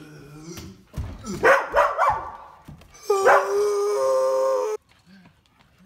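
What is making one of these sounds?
A young man exclaims loudly close by.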